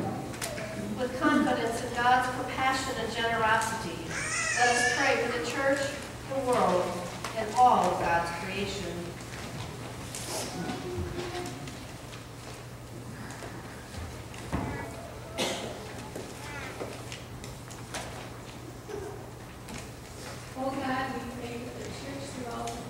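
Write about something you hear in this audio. A woman's voice sings or chants through a microphone in a large echoing room.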